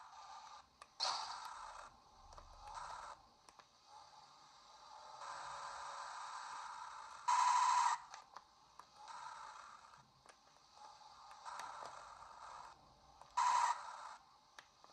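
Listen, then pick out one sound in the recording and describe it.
Plastic buttons click softly under thumbs.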